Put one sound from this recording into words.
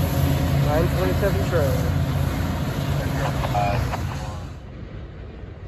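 A diesel locomotive rumbles steadily as it approaches.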